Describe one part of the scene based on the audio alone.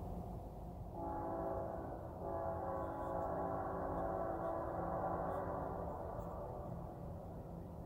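A train horn blows loudly in long blasts, then fades.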